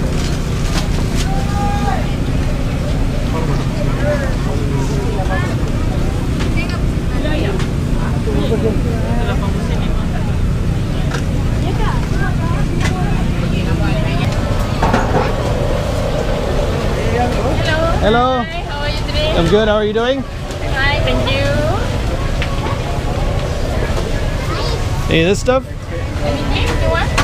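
A crowd of people chatters all around, outdoors.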